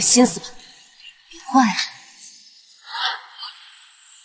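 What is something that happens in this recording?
A young man speaks in a low voice.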